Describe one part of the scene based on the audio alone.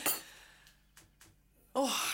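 A woman gasps and exclaims loudly in surprise.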